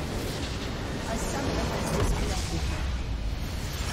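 A large structure explodes with a deep, rumbling boom.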